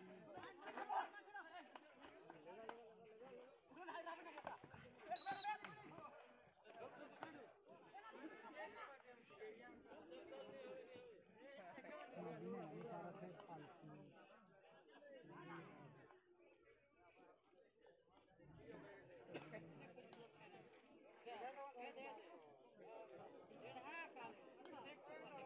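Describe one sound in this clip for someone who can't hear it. Hockey sticks clack sharply against a ball.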